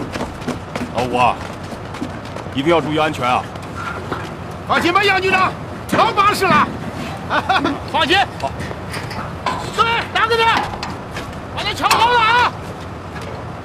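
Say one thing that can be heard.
A man calls out loudly and cheerfully.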